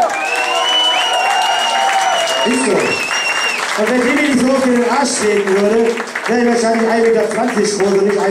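A woman claps her hands in rhythm.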